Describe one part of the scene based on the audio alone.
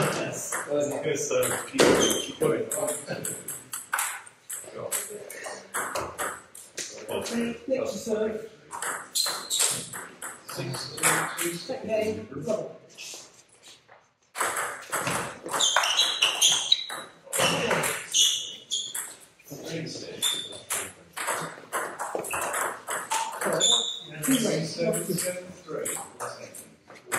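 A ping-pong ball clicks back and forth off paddles and a table in an echoing hall.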